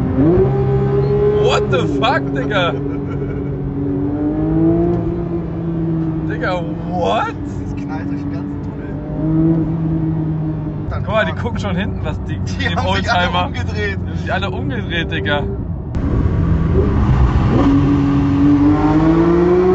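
A car engine roars and revs up and down, heard from inside the car.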